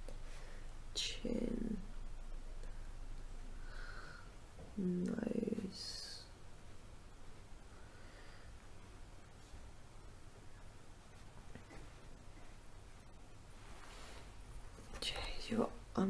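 A young woman speaks softly close to the microphone.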